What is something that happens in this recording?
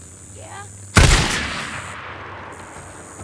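A rifle shot cracks loudly and echoes away.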